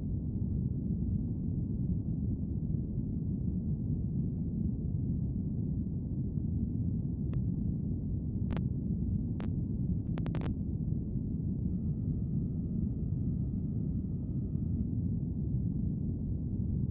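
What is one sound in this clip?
A rocket engine rumbles steadily and low.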